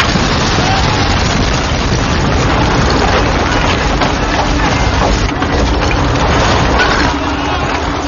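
A car smashes through a wall with a loud crash.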